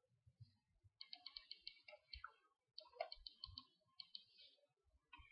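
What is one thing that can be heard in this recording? Light metallic clicks and taps come from handling thin wire.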